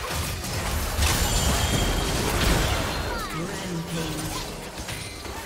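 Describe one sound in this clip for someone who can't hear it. Magic blasts and impacts crash and whoosh in a hectic battle.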